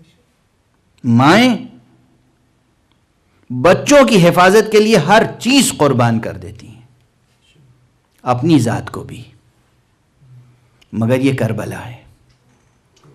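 A middle-aged man speaks emphatically into a close microphone, in short bursts with pauses.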